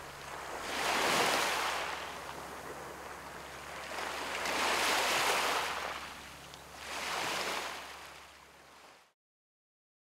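Small waves wash in and rattle over pebbles on a shore.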